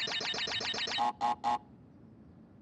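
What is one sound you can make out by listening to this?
Three short electronic chimes ring out.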